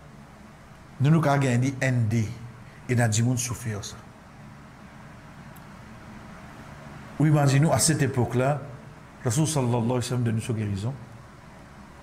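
A man speaks calmly into a nearby microphone, in short bursts with pauses.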